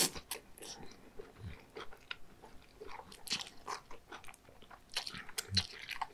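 A man chews food wetly and close up.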